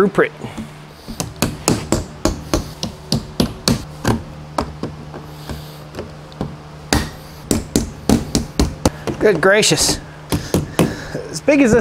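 A hammer taps and pries at nails in a wooden crate lid.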